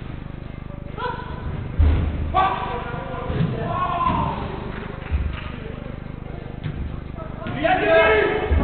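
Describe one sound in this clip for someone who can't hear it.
Men shout to each other in an echoing hall.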